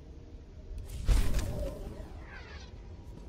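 A bright chime rings out once.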